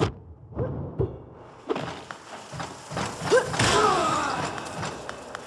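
A bright burst of magic blasts with a booming whoosh.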